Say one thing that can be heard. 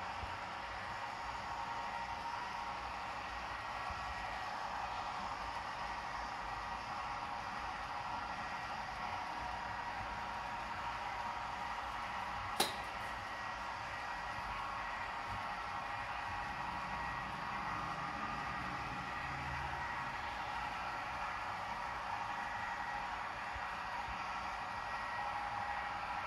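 A model train rumbles steadily along the track.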